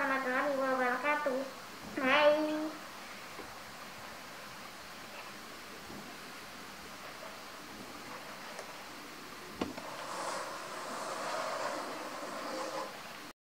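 A young girl speaks brightly and close by.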